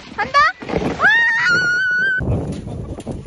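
A young woman shrieks and laughs close by.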